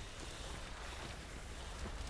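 A heavy blade swooshes through the air.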